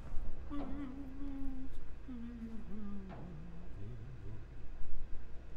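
An elderly man hums an operatic tune, close by.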